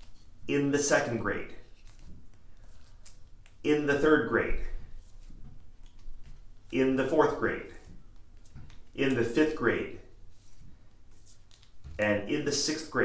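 A man speaks clearly and slowly into a nearby microphone, reading out short phrases with pauses between them.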